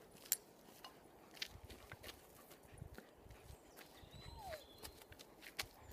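Footsteps crunch on a dirt path outdoors.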